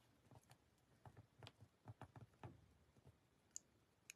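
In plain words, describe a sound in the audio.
Paper taps and rustles softly under fingers.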